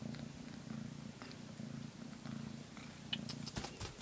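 A cat licks a newborn kitten with soft wet sounds.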